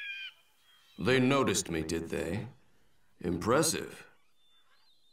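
A man speaks slyly and calmly.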